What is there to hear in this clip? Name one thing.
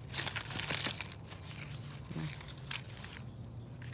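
Hands rustle dry leaves and stems in a plastic plant pot.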